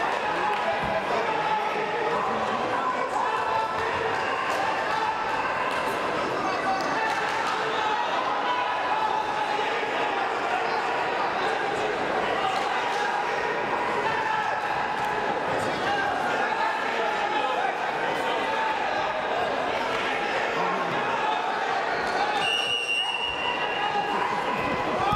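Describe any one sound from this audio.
A crowd murmurs and chatters steadily in a large echoing hall.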